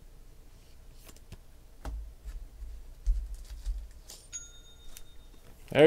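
Card packs rustle and tap softly as hands handle them.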